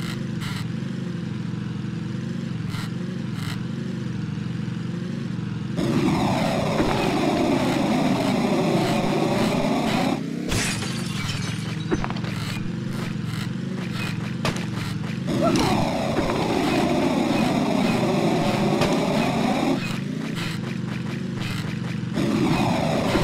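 A small kart engine hums steadily.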